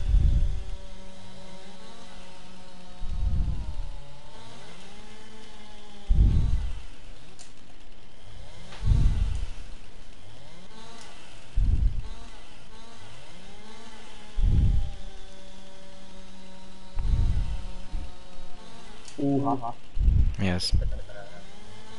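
A chainsaw revs up in loud, repeated bursts.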